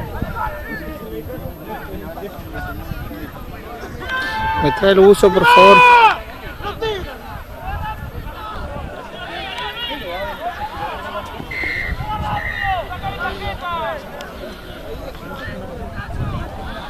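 A crowd of onlookers chatters in the distance.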